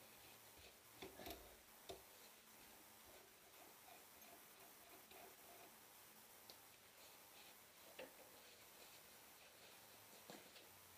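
Metal parts clink and knock close by.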